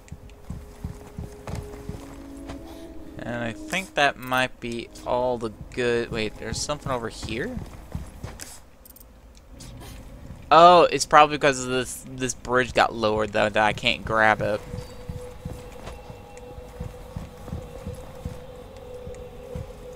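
Footsteps tread slowly across a carpeted floor.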